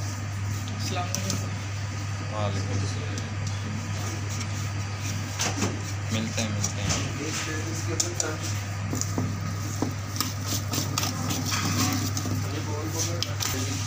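A wire whisk clinks and scrapes against a metal bowl.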